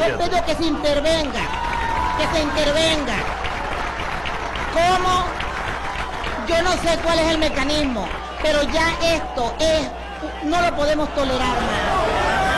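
A woman speaks forcefully into a microphone.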